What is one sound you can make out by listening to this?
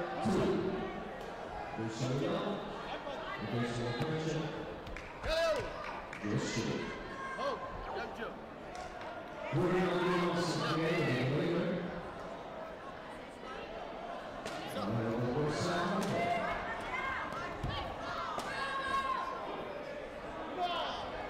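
Martial artists shout sharply as they spar in an echoing hall.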